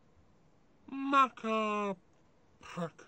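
A small cartoon character calls out in a high, squeaky voice.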